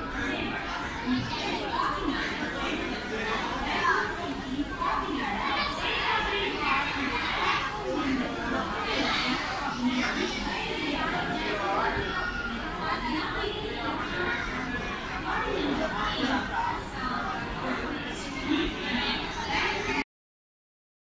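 A crowd murmurs and chatters on a busy platform.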